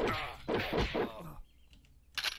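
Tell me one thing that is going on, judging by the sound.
Fists punch and thump against a body.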